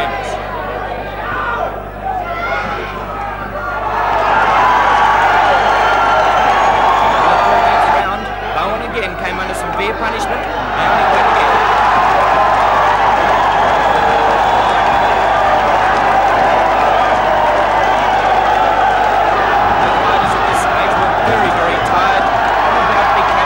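A large crowd cheers and roars loudly.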